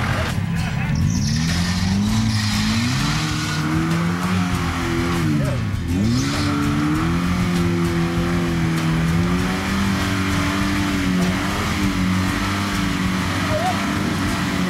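A four-wheel-drive engine revs up and down while climbing a muddy track.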